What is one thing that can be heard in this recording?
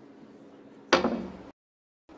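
A snooker cue strikes a ball sharply.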